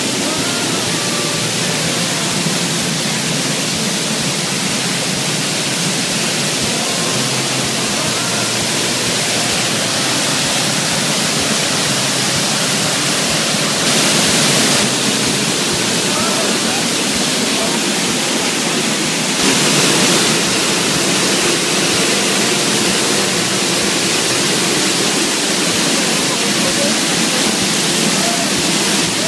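A waterfall roars and splashes steadily close by.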